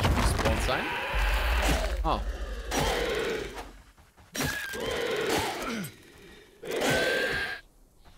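Weapon blows swish and thud in quick bursts.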